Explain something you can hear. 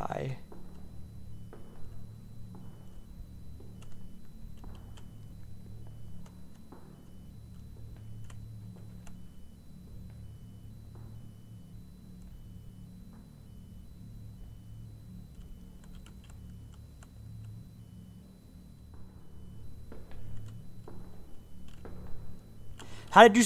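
Footsteps thud slowly on rock in an echoing cave.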